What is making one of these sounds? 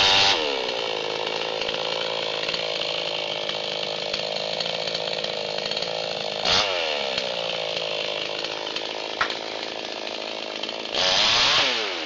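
A chainsaw engine idles with a steady rumble.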